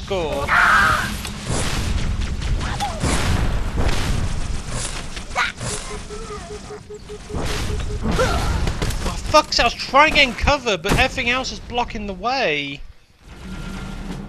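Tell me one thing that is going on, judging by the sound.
An energy sword swings with a sharp electric hum.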